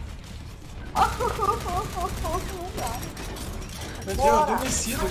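Game guns fire in rapid bursts.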